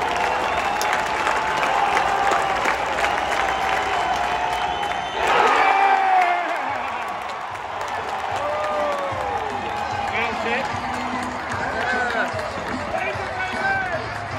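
A large crowd chatters and calls out all around in an open stadium.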